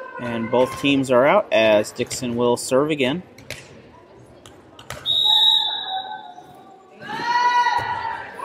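A volleyball smacks off a player's hand, echoing in a large hall.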